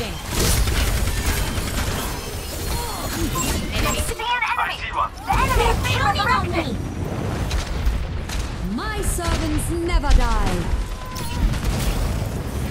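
Video game weapons fire in quick bursts.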